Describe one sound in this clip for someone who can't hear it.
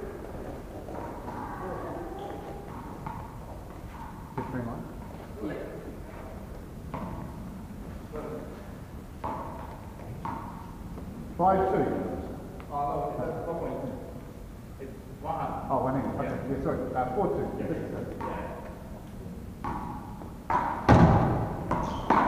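A ball bounces and thuds on a hard floor.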